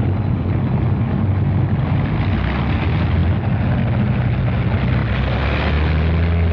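Propeller aircraft engines drone loudly and steadily close by.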